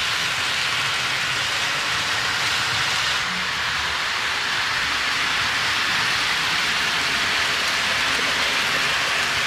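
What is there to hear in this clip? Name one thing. A model train's wheels click and rumble steadily along the track.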